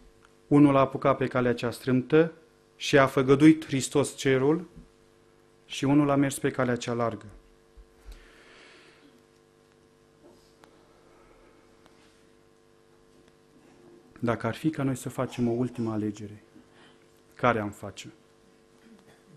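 A middle-aged man speaks steadily through a microphone, pausing now and then.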